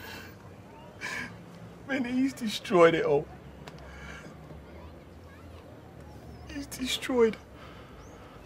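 A man sobs and whimpers in distress.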